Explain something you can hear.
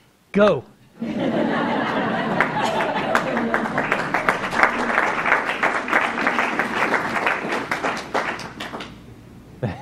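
A small crowd claps steadily, then the clapping dies away.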